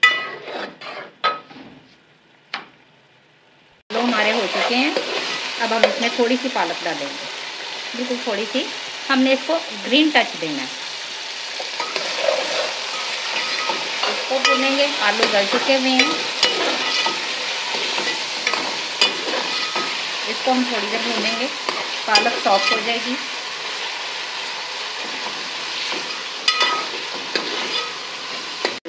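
A metal ladle scrapes and clinks against a metal pot.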